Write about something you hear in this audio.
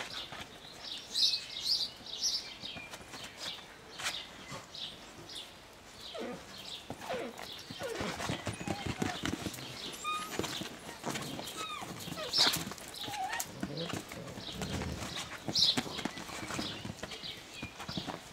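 Puppies yelp and whimper in high squeaky voices.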